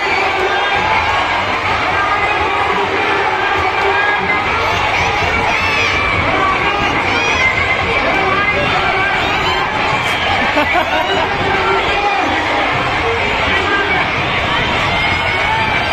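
A large crowd of young people cheers and shouts loudly outdoors.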